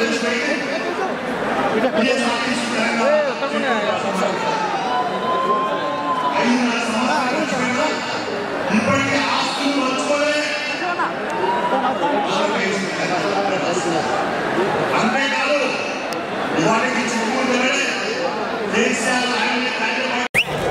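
A large crowd cheers and shouts throughout a big echoing hall.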